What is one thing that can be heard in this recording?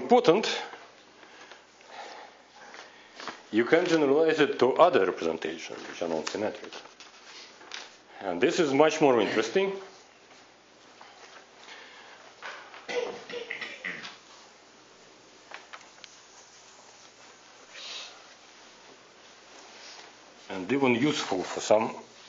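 A man lectures calmly through a microphone in a large room.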